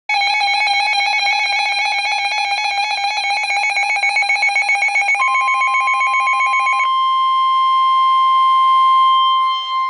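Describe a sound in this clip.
An electronic alarm warbles rapidly and shrilly, then changes to a steady high tone.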